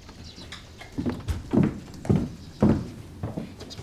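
Footsteps thud on a floor.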